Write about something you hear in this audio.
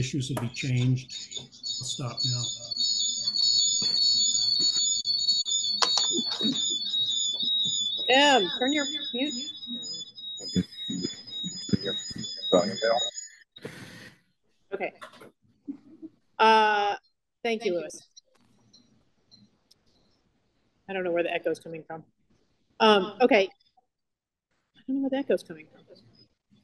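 A middle-aged woman speaks with animation over an online call.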